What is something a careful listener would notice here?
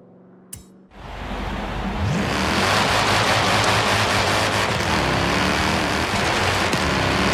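Tyres hiss and rumble over the road.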